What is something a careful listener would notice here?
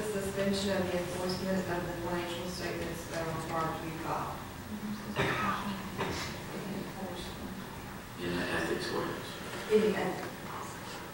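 A man speaks calmly into a microphone in a large room with a slight echo.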